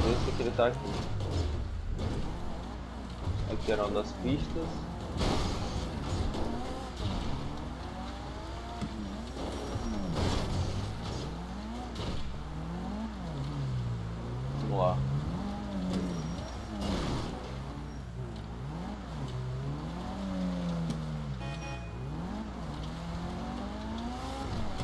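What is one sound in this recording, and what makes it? A car engine revs and whines up and down.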